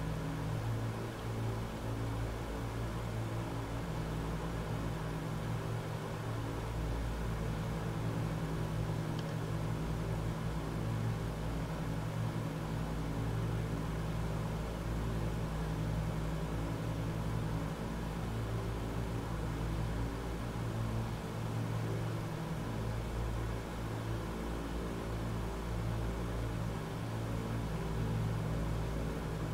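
Propeller engines drone steadily with a low, pulsing hum.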